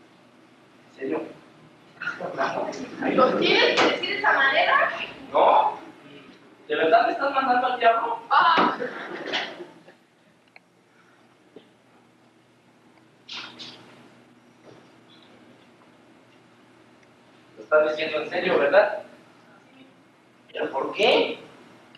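A young man speaks loudly in an echoing hall.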